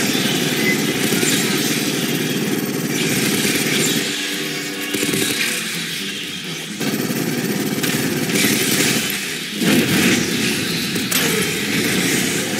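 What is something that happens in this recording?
Automatic gunfire rattles rapidly.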